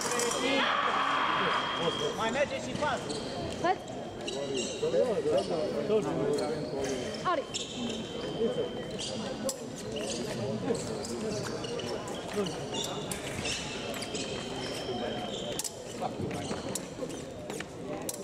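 Fencers' shoes tap and squeak on the floor.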